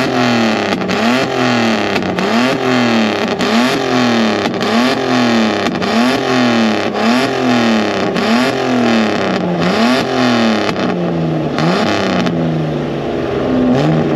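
A car engine revs hard over and over, rising and falling quickly, very close.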